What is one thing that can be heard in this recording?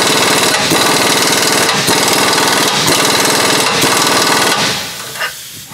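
A compressed air tool hisses loudly.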